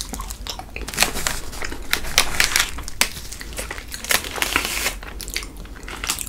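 A plastic wrapper crinkles loudly close by.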